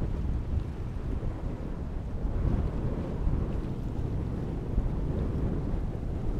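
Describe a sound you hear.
Choppy water laps and splashes.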